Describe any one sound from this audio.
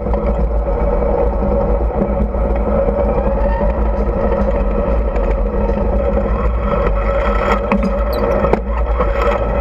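A tank's tracks clank and grind over rubble.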